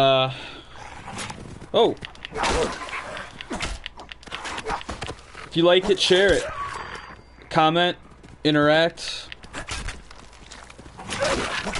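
Dogs snarl and bark while fighting.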